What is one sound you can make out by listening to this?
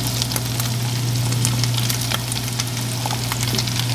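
Sliced vegetables drop into a pan.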